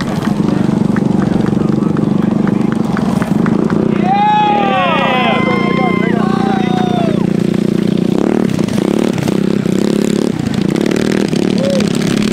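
A small motorbike engine hums and buzzes steadily nearby.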